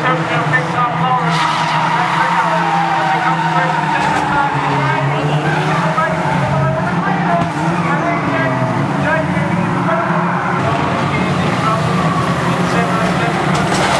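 Cars crash and scrape against each other with metallic bangs.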